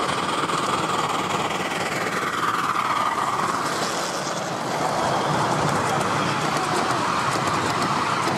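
Train wheels clatter and rumble along the rails.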